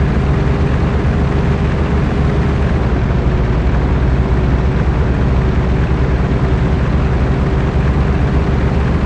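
Tyres roll over a rough dirt road.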